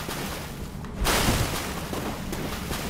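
A sword swishes through the air and strikes.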